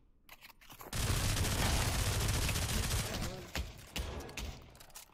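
A submachine gun fires a long, rapid burst.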